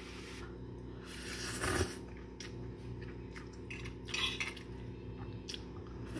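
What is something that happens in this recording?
A young woman slurps noodles.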